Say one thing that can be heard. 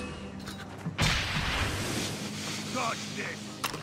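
A smoke bomb bursts with a sharp hiss.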